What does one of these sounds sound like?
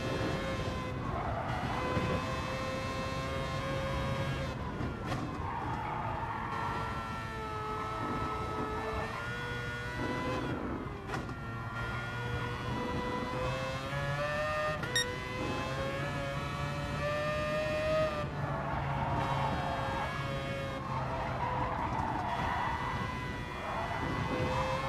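Tyres squeal through the corners.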